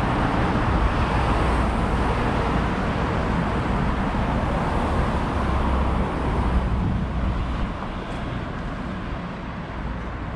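Cars pass by on a nearby road.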